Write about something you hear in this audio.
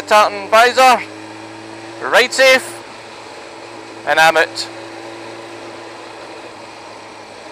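Wind rushes past the moving motorcycle.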